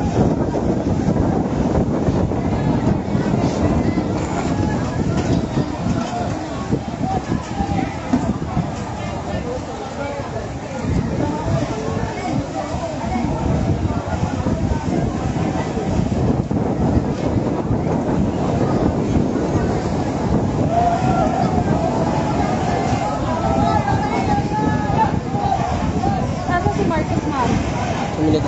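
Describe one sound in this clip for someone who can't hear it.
Strong wind rumbles and buffets steadily outdoors.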